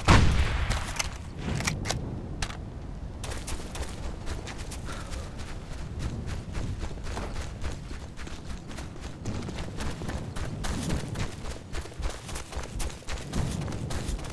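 Gunfire crackles rapidly in the distance.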